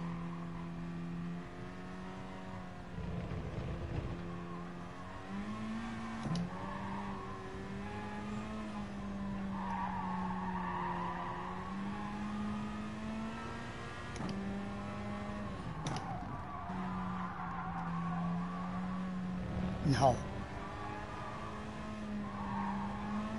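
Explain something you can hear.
A racing car engine hums steadily, its pitch shifting up and down with gear changes.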